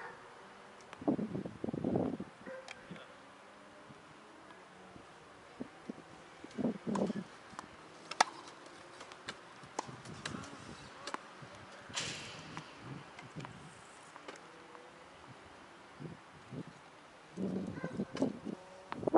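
Wheelchair wheels roll and rattle on a hard court.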